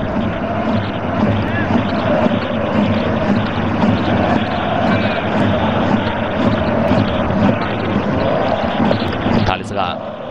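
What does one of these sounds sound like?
A large stadium crowd chants and roars steadily.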